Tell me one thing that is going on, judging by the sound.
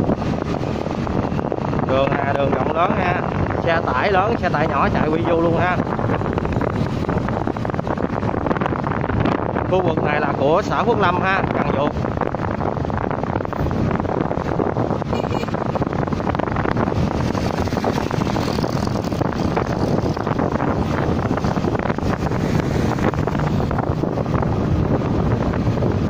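Wind rushes loudly past while riding along a road outdoors.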